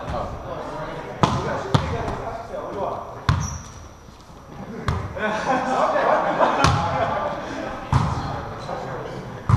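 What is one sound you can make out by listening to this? Several men call out and talk during play.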